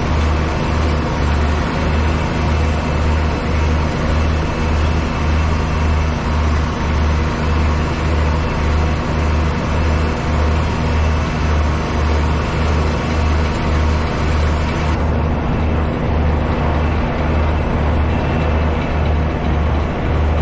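A baler thumps in a regular rhythm behind a tractor.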